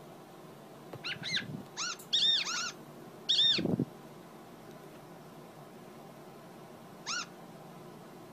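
Short, high, chirping squeaks play from a tablet game.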